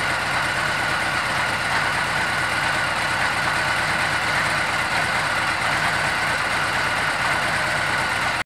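A motorcycle engine idles with a steady, loping rumble.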